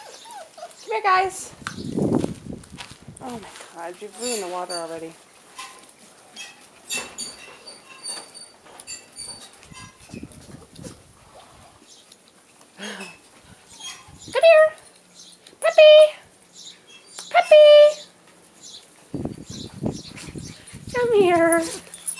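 Puppies whine and yelp close by, in short high cries.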